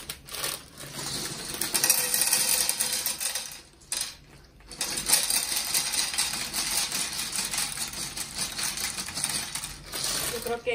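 Dry pasta rattles as it pours into a pan.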